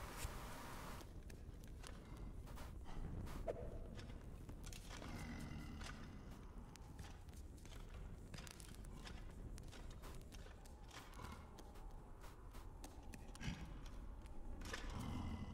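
Small footsteps patter softly on stone.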